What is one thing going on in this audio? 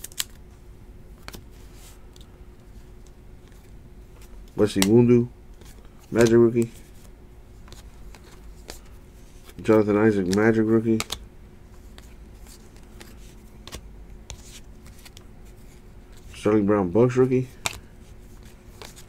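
Trading cards rustle and flick softly as they are shuffled by hand.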